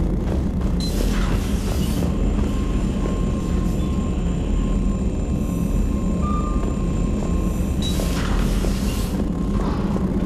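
A sliding door whooshes open.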